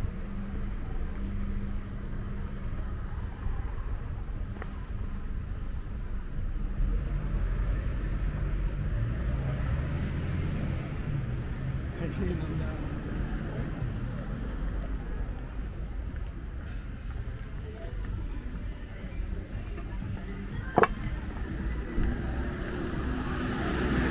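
Footsteps tap on a pavement outdoors.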